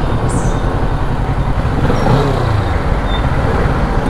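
A jeepney engine rumbles close by.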